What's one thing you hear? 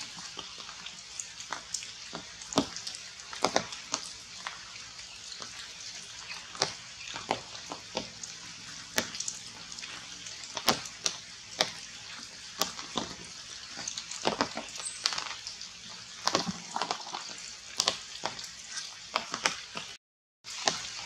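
Leaves and branches rustle as monkeys climb through a tree.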